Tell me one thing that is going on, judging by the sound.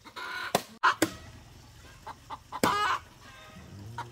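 A hen clucks nearby.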